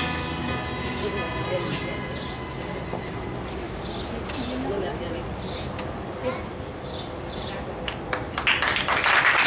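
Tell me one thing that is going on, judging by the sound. Adults chat softly at a distance outdoors.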